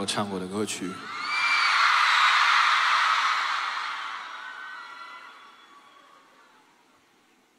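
A large crowd cheers and whistles, then fades away.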